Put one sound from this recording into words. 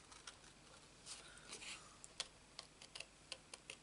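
Scissors snip through card.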